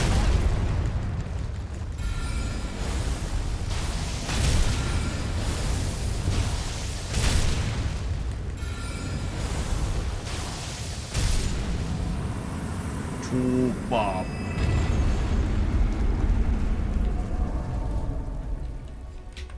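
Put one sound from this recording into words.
Heavy blows and magic blasts boom and crash.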